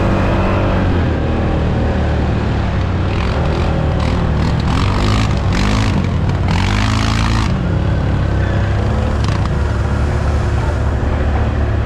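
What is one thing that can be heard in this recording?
An engine rumbles steadily close by, revving up and down.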